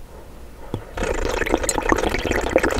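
Wet lips smack and slurp on hard candy, loud and close.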